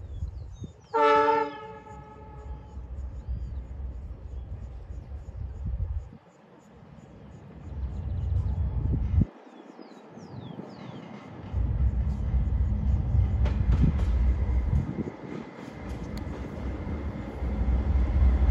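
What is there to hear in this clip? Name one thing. A diesel locomotive rumbles deeply as it approaches.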